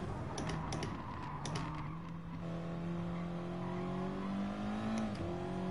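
A racing car engine drones and revs as the car shifts gears.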